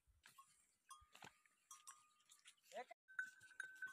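Camels' hooves tread softly on sandy ground.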